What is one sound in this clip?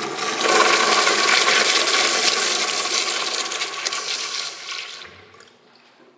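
A urinal flushes with rushing water.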